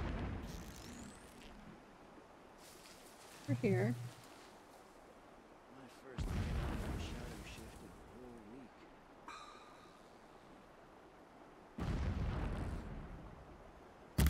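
Arrows whoosh through the air.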